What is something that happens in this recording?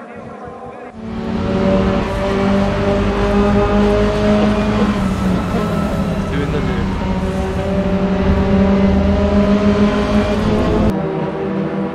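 A race car engine roars loudly and steadily from inside the car.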